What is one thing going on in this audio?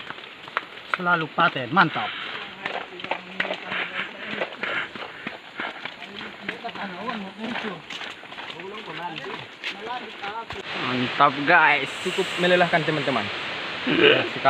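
A young man talks calmly close by.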